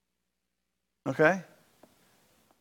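A middle-aged man speaks briefly through a microphone, with pauses, in a room with some echo.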